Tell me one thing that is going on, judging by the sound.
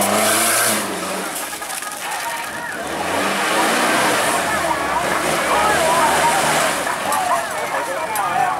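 An off-road buggy engine revs as its tyres churn through mud.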